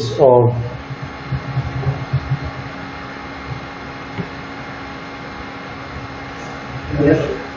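A pen scratches across paper against a ruler.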